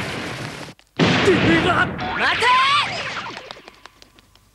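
A young man yells in alarm.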